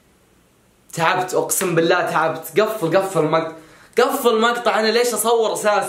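A young man talks loudly and with animation, close by.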